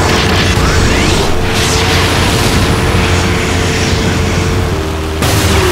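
A buggy's engine roars loudly at high speed.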